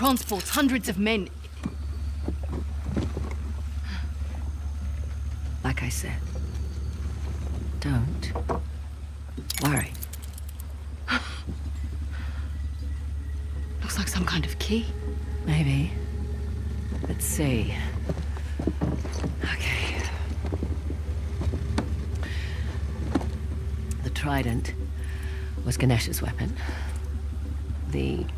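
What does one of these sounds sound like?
A young woman speaks calmly and playfully, close by.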